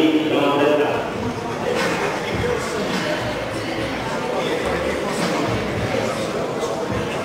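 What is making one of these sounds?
A crowd murmurs in a large open venue.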